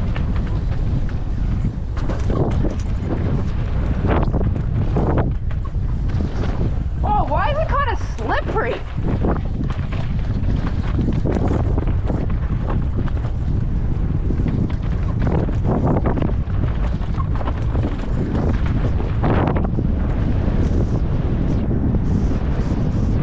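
Wind rumbles hard against a microphone outdoors.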